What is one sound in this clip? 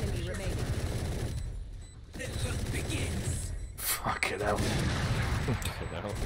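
Rapid gunfire rattles from a game.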